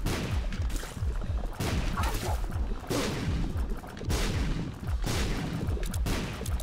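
Shots fire rapidly in quick bursts.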